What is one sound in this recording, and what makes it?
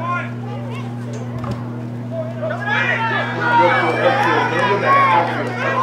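Several men and children talk and shout at once outdoors, near and far.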